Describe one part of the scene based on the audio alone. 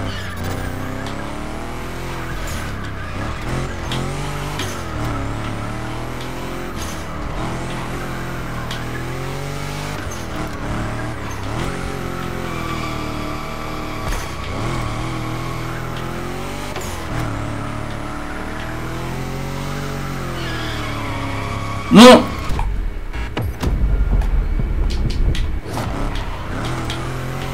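Tyres squeal on the road.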